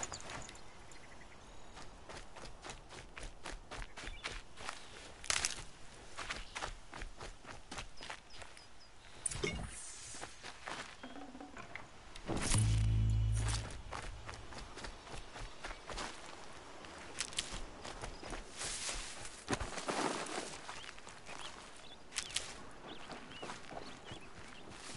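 Footsteps run quickly through grass and brush.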